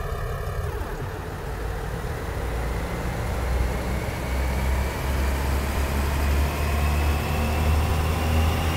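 A diesel train engine revs up, rising in pitch as the train pulls away.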